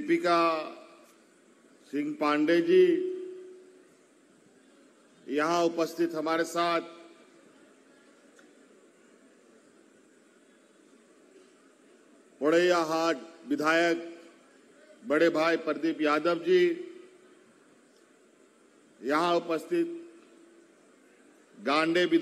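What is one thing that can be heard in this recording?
A man speaks into a microphone over loudspeakers in short, forceful bursts with long pauses.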